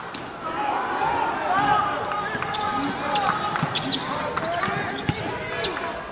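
A basketball bounces on the court with dull thumps.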